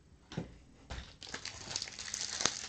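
A foil card pack crinkles as it is torn open.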